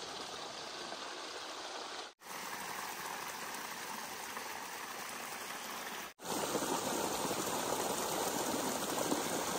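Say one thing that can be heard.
Wind rustles through tall rice plants outdoors.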